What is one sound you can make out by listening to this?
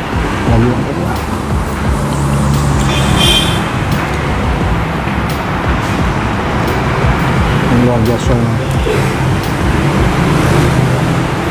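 A young man talks calmly close by, through a microphone.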